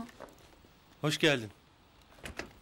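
A young man speaks briefly, close by.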